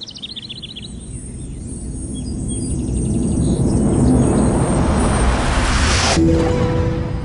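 A shimmering magical whoosh swells up and then cuts off.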